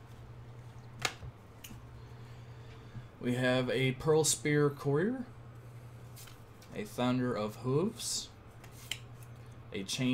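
Playing cards rustle and slide against each other in hands.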